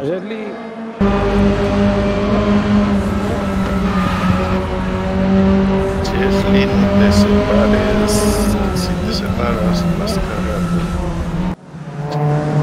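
A car engine roars loudly up close as it accelerates and shifts gears.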